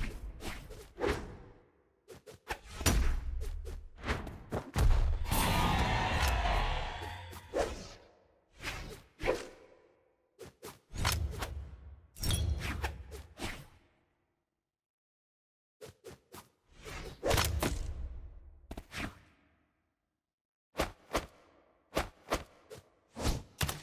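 Game fighters land sharp hits and swooshing attacks in quick bursts.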